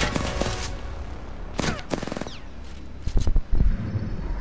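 A gun fires several loud shots.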